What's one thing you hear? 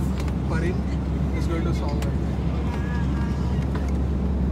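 A young boy laughs softly.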